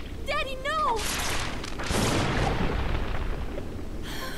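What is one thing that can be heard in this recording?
A crackling electric blast bursts loudly.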